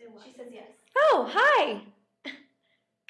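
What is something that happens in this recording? A young woman laughs close to a computer microphone.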